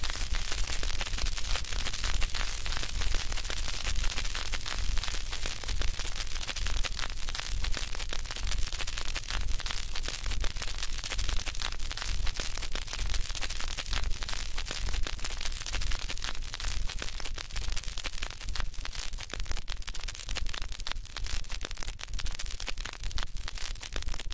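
A gramophone plays a record with steady crackle and hiss.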